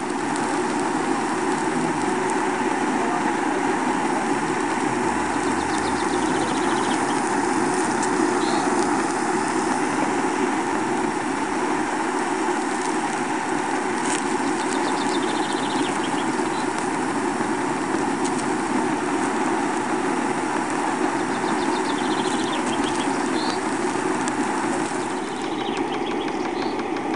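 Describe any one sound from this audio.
A small steam engine chugs steadily with a fast hissing rhythm.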